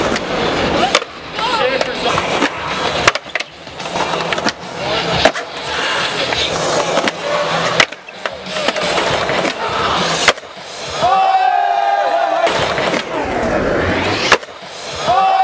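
A skateboard clacks and slaps hard on concrete.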